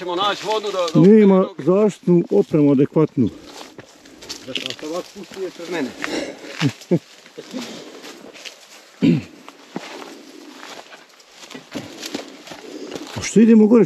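Footsteps crunch on dry grass and loose stones.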